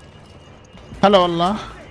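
A young man speaks loudly into a close microphone.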